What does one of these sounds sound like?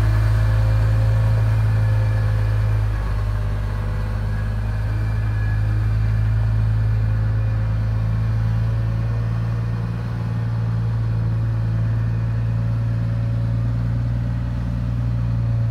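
A huge diesel truck engine rumbles loudly and steadily as the truck drives away.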